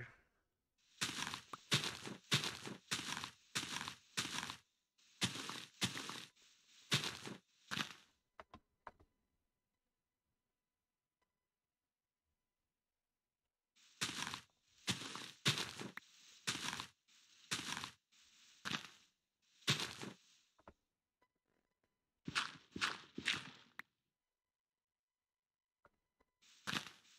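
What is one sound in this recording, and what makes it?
Leaves rustle and crunch in quick bursts as they are broken.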